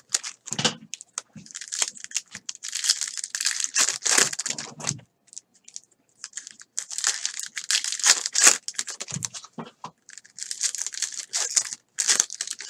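Plastic card wrappers crinkle and rustle as they are torn open.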